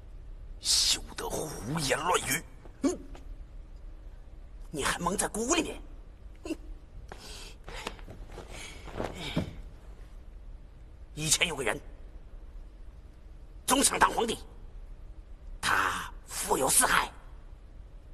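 A second man speaks sternly, close by.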